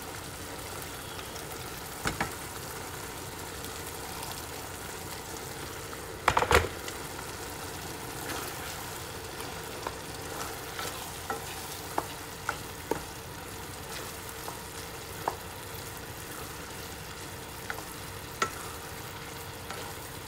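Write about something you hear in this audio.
Food sizzles softly in a pan.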